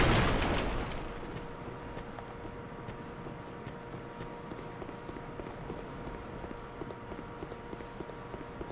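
Armoured footsteps thud on grass.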